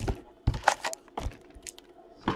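A cardboard box is handled and opened.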